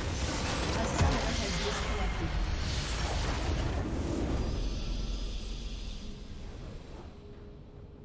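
A game's victory fanfare bursts out loudly and then fades.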